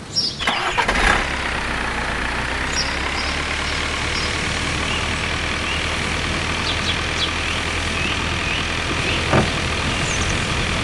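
A small truck engine hums steadily.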